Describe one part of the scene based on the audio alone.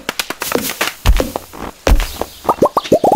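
A tree crashes to the ground with a heavy thud.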